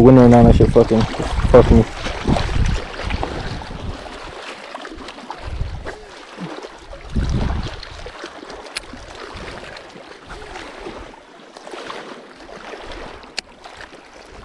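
A fishing reel clicks as it is handled.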